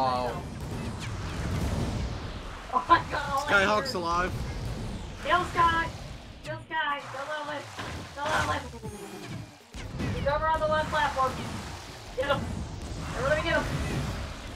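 Bright chiming bursts of game sound effects go off.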